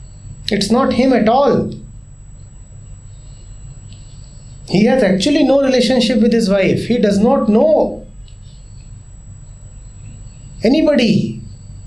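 A man speaks calmly and thoughtfully into a close microphone, pausing between phrases.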